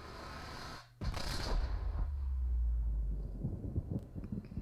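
A rocket engine rumbles and roars.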